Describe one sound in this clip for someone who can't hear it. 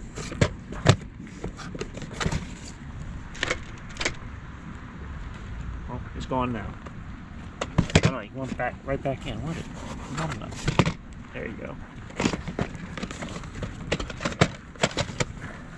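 Plastic tape cases clack and scrape against each other in a cardboard box.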